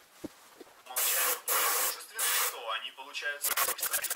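An airbrush hisses in loud bursts.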